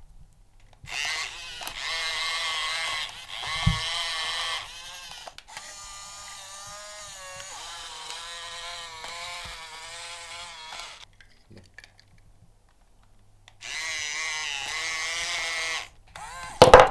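Small electric motors whine as a toy excavator moves its arm and turns.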